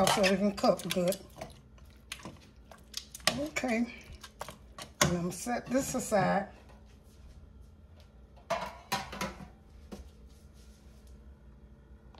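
Metal tongs clink against a metal pot.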